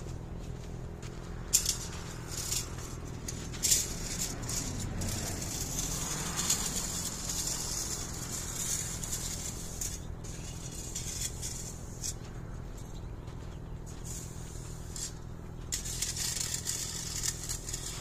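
Footsteps in clogs crunch on fine mulch.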